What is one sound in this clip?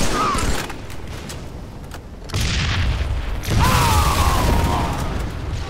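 Gunfire rattles and booms loudly.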